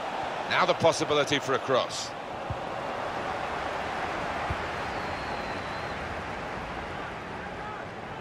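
A stadium crowd murmurs and roars steadily.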